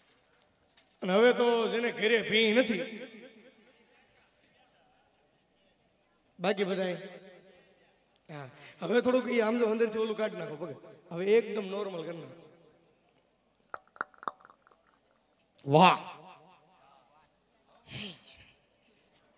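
A man sings loudly through a loudspeaker, in long held phrases with pauses between them.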